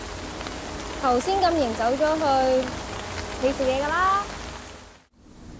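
A young woman speaks cheerfully up close.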